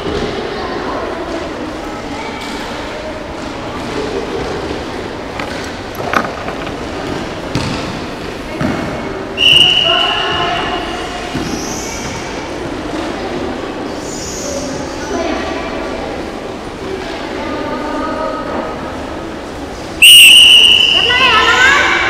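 Young women shout and call out across a large echoing hall.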